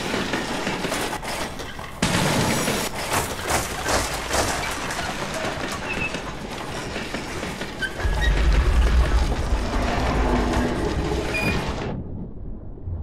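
A mine cart rattles and rumbles along rails.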